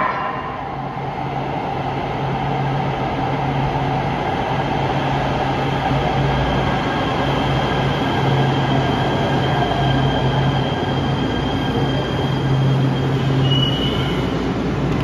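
A train rumbles in along the tracks.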